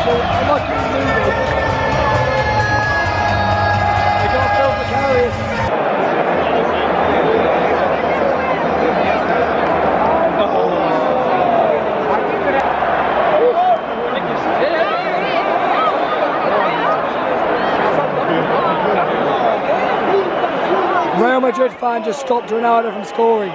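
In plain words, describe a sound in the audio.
A huge stadium crowd roars and chants all around, echoing in a large open arena.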